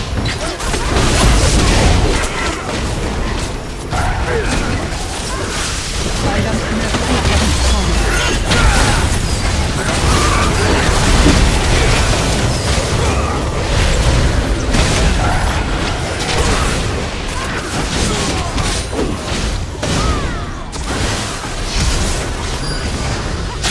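Game spell effects and attacks crackle and boom rapidly.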